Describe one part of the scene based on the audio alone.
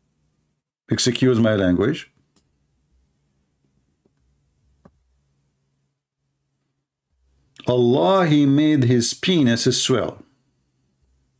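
A man speaks with animation close to a microphone, in short bursts.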